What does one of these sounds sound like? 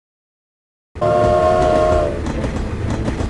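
A steam train whistle toots.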